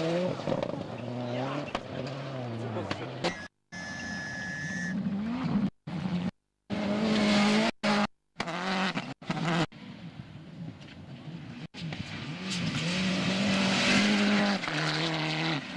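Gravel sprays and crunches under spinning tyres.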